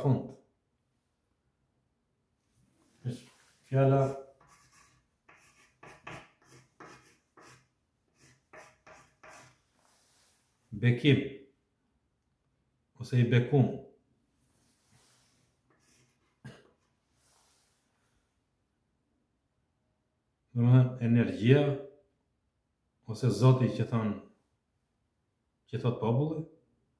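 A middle-aged man speaks calmly and clearly, close by, in short phrases.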